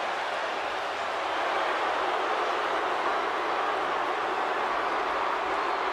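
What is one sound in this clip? A huge crowd cheers and roars steadily in a large echoing arena.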